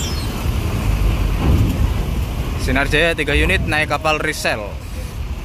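A bus engine rumbles low as the bus rolls slowly forward.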